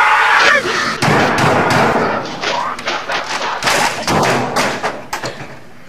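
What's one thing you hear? A man smashes a keyboard hard against a desk, over and over.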